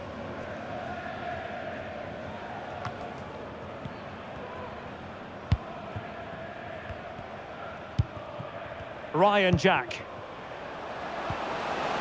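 A large crowd cheers and chants steadily in a stadium.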